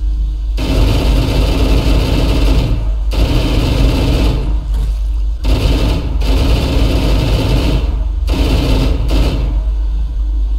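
A rifle fires rapid bursts of automatic fire.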